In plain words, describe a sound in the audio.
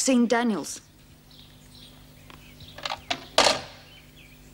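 A telephone receiver clunks down onto its cradle.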